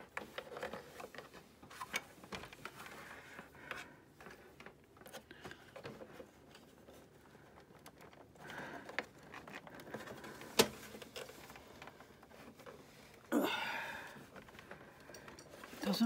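Plastic printer parts knock and click under hands.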